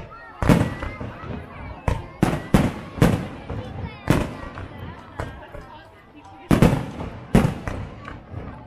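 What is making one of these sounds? Fireworks crackle and sizzle after each burst.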